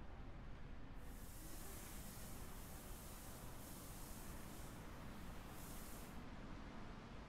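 Sand pours out of a sack with a soft, steady hiss.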